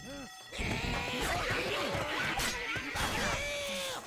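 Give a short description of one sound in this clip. Zombies snarl and shriek close by.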